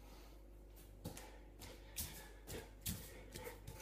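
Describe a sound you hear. Hands and feet thump on a hard floor.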